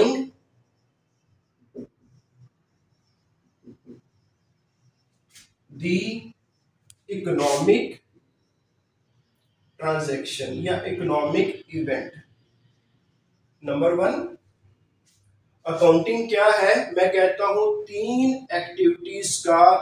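A man lectures calmly and clearly, close by, in short bursts with pauses.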